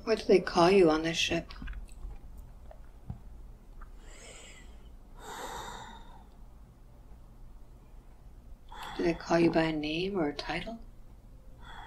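An elderly woman moans and groans close by.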